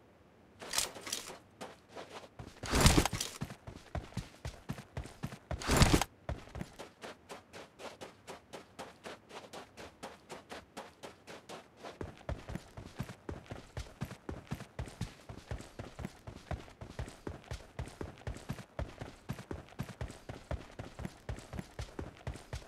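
Footsteps run quickly and steadily over dirt and pavement.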